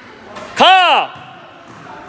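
A basketball bounces on a court floor.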